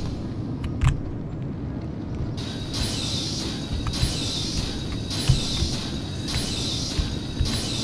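A heavy wooden crate scrapes along the floor as it is pushed.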